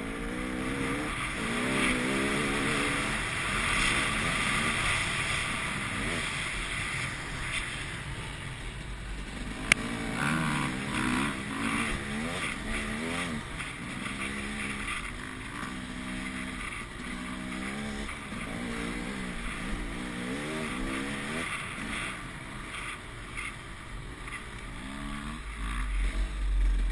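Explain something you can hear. A motorcycle engine revs up and down loudly close by.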